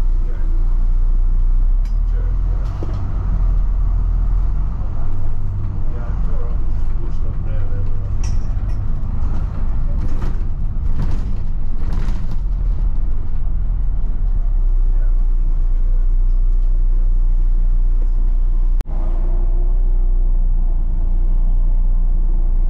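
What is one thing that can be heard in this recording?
Traffic passes by on the street.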